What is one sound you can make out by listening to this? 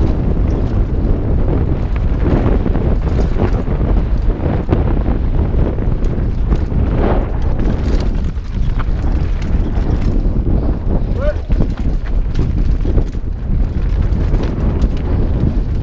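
Wind rushes loudly past a fast-moving rider.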